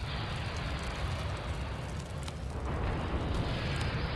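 A rocket launches with a rushing roar.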